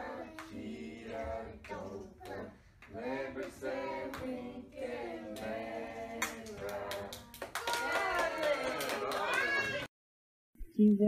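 Small hands clap in time.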